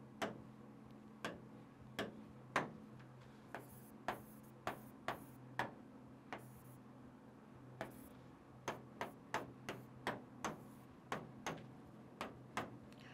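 A pen taps and clicks against a board.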